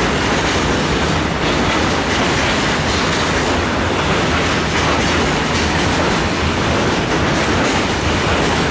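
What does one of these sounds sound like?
Freight wagon wheels clatter over the rails.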